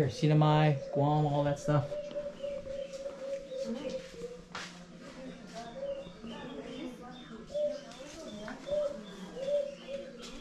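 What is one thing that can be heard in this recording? A young man talks close by, calmly explaining.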